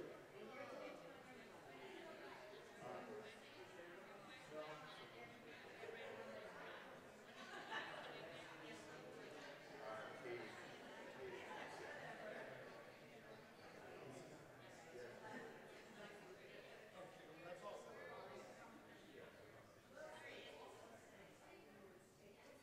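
A man speaks in a large echoing hall.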